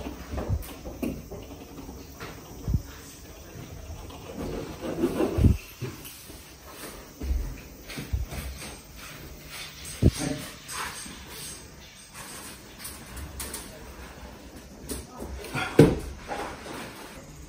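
A worker knocks and scrapes against a wall nearby.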